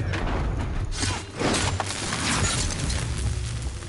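A loud crackling blast bursts with shattering pieces.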